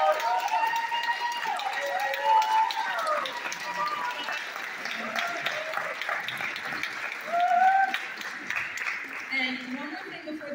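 A crowd cheers and whoops loudly in a large hall.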